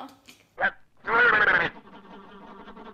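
A woman talks with animation.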